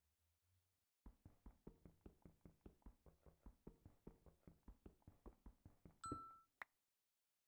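A pickaxe taps rapidly at stone in a game.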